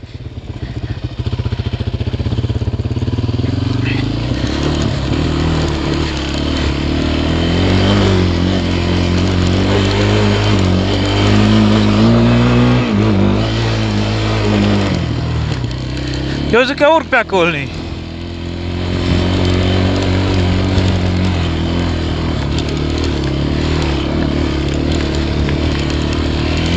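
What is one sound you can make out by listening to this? A quad bike engine drones up close, revving up and down.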